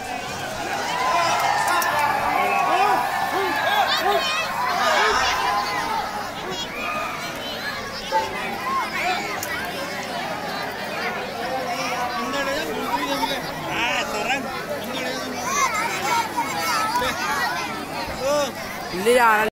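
A large crowd of children chatters and shouts all around.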